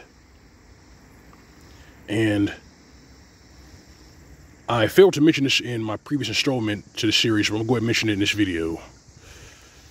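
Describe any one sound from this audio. A shallow stream trickles softly over stones.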